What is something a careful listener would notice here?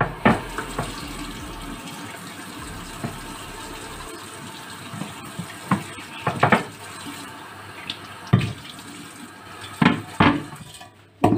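Dishes clink and knock against each other in a sink.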